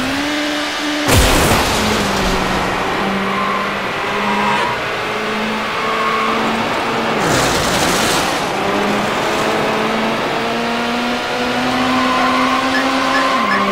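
A racing car engine roars steadily, rising and falling in pitch as the car speeds up and slows down.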